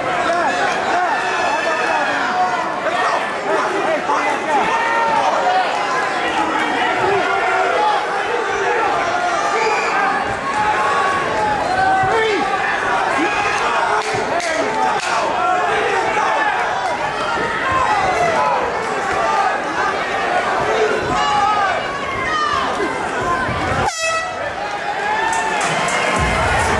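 A crowd shouts and cheers loudly throughout.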